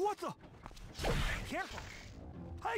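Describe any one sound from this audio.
Heavy blows strike flesh with wet thuds.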